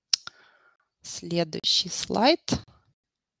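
A young woman speaks calmly into a microphone, heard as on an online call.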